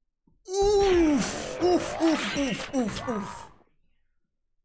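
A young man shouts excitedly through a headset microphone.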